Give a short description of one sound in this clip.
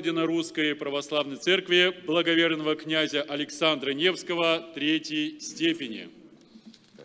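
An elderly man speaks calmly nearby in an echoing hall.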